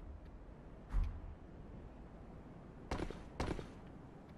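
A heavy body lands with a dull thud.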